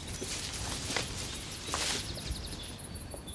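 Leaves and branches rustle close by as people brush past.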